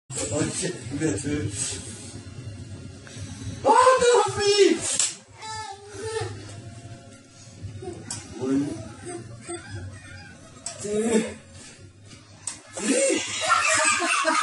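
A man talks and laughs nearby.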